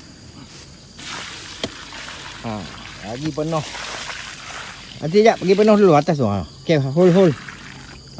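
Liquid pours from a bucket and splashes onto loose soil.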